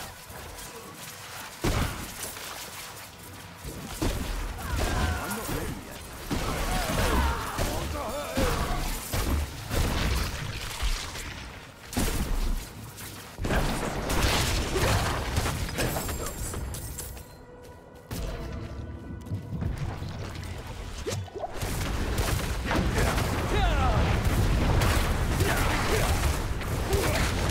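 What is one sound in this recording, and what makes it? Fiery spell blasts and hits crash and crackle over and over.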